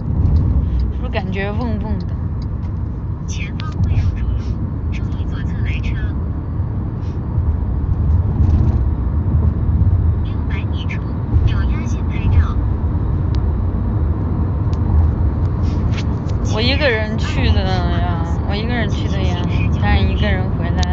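A young woman talks quietly close to a phone.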